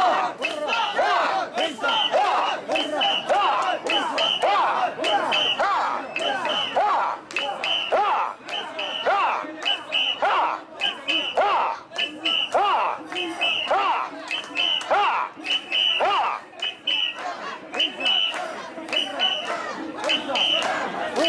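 A crowd of men and women chant loudly in rhythm, close by.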